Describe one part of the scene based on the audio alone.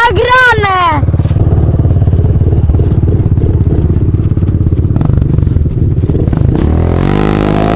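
A dirt bike engine roars up close at full throttle.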